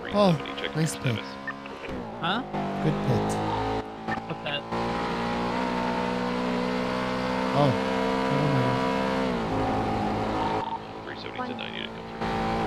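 A car engine roars steadily as the car speeds along.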